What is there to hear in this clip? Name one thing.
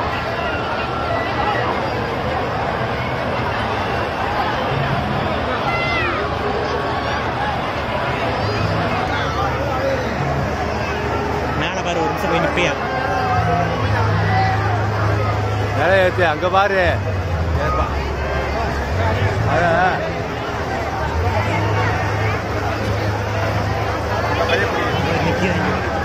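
A fairground ride's machinery hums with a low drone.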